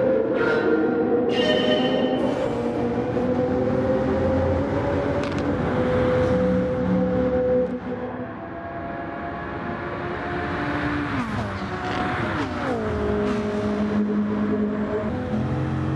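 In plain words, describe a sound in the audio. Racing car engines roar at high revs, echoing in a tunnel.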